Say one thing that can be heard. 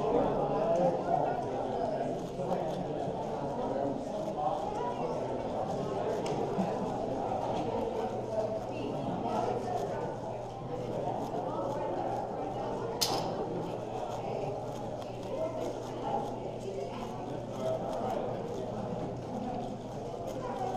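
A puzzle cube clicks and rattles rapidly as it is turned.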